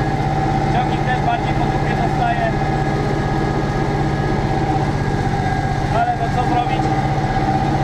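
A fan whirs in the cab.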